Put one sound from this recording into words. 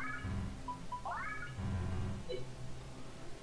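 Short electronic blips sound from a video game menu.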